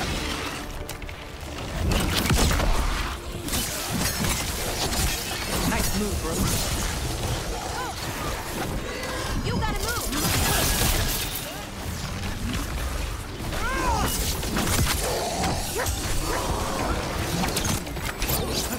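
Blades clash and strike in a fast fight.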